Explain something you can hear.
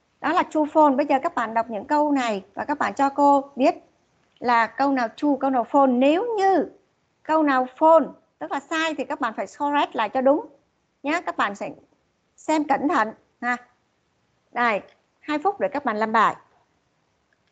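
A woman speaks calmly and clearly, heard through an online call.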